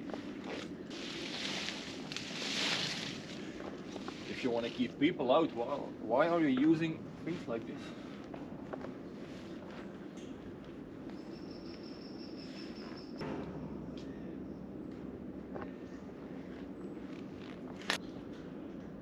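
Shoes and hands knock and clank on a rusty metal bridge.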